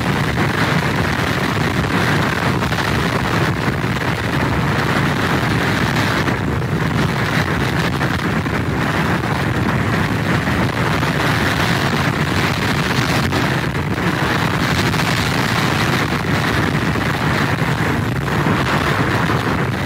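Strong wind roars and buffets steadily outdoors.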